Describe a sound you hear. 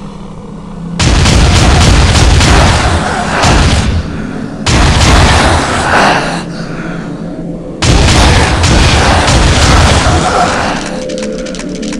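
A gun fires in loud, rapid bursts.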